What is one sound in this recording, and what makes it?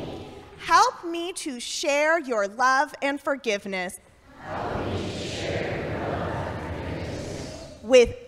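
A woman speaks with animation through a microphone in a large echoing room.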